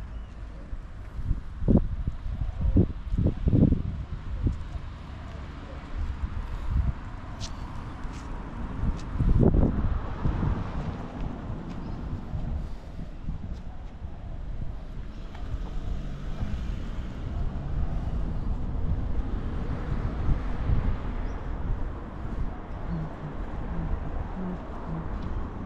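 Wind blows steadily outdoors, rumbling across the microphone.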